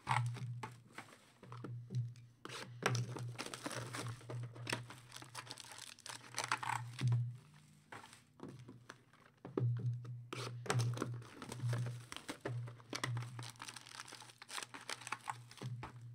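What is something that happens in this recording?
Card packs tap and clack against each other as they are stacked.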